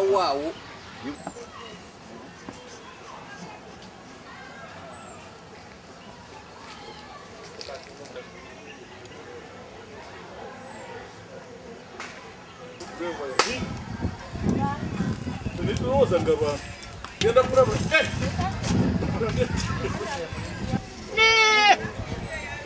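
A goat bleats loudly nearby.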